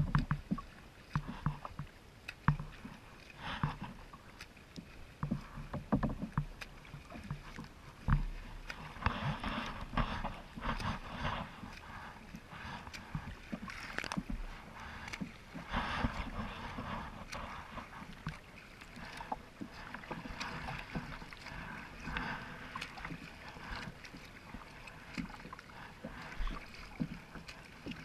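Wind rumbles across the open water.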